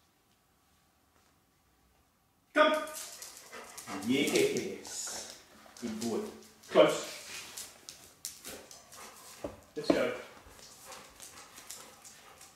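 A dog's claws click on a tiled floor.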